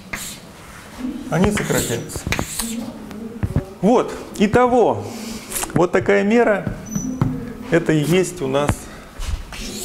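A young man lectures calmly.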